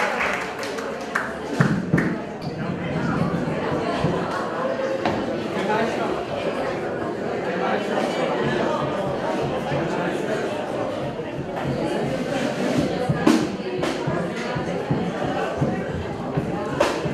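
A group of men sings together in an echoing hall.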